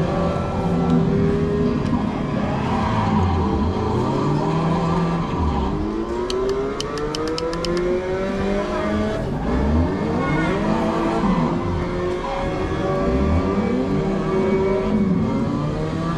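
Racing car engines rev and whine from a game's loudspeakers.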